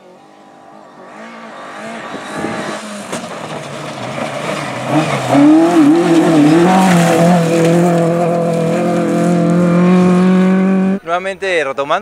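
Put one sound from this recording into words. A rally car engine roars, revving up and down as it approaches and passes close by.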